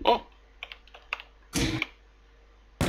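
A wall switch clicks.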